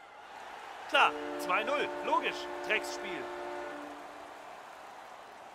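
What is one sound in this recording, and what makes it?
A goal horn blares loudly.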